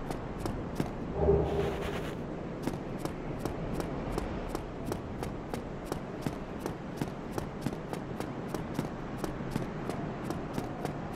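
Footsteps run quickly on stone.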